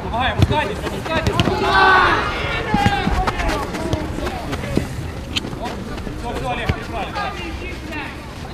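Men shout to each other across an open pitch.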